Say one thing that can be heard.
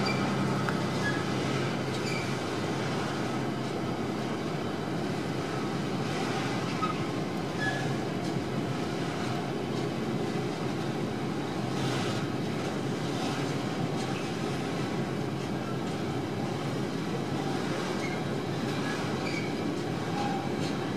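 A freight train rumbles steadily past close by.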